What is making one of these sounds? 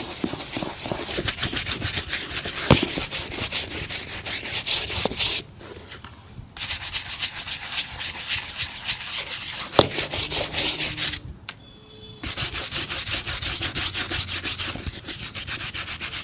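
A brush scrubs rapidly against a shoe with a rasping sound.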